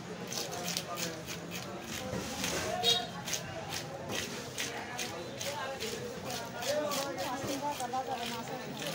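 A scraper rasps rapidly against fish scales.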